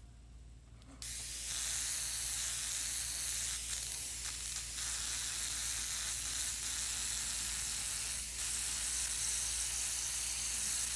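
An airbrush hisses steadily with a soft rush of air.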